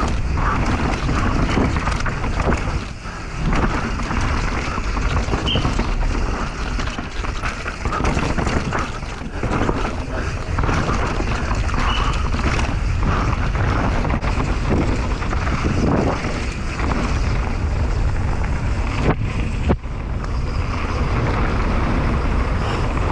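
Wind roars loudly past a helmet-mounted microphone.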